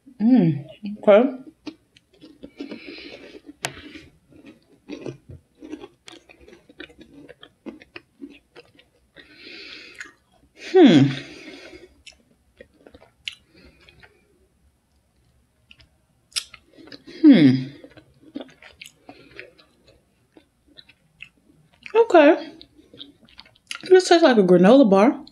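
A young woman chews food with wet, smacking sounds.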